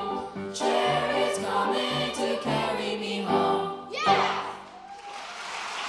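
A children's choir sings in a large, echoing hall.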